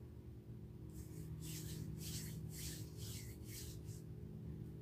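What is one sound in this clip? Hands rub briskly together, with a dry swishing.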